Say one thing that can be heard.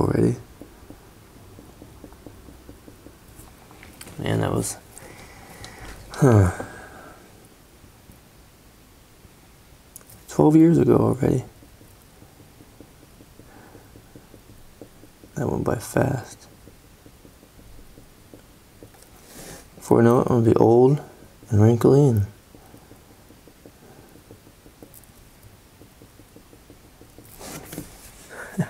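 A felt-tip marker scratches softly on paper.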